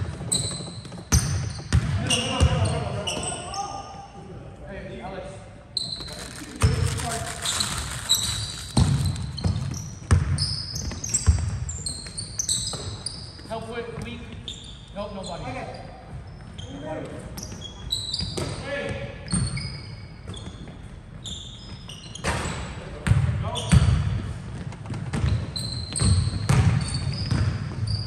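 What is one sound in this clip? Young men call out to each other across the court.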